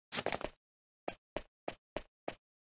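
Footsteps tap steadily on a stone floor.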